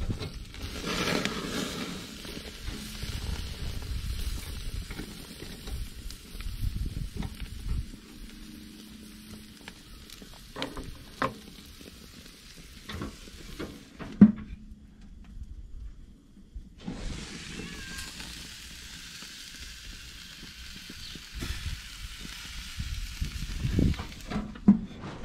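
Meat sizzles and hisses on a hot grill.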